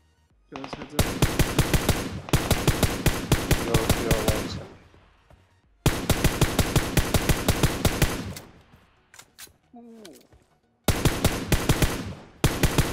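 Rapid rifle gunfire rattles in quick bursts.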